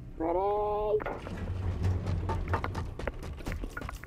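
Elevator doors slide open with a low rumble.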